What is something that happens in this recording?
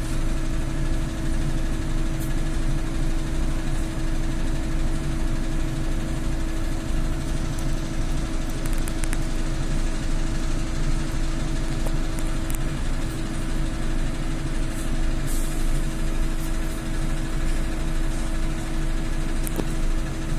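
A trolleybus rumbles as it moves along the road.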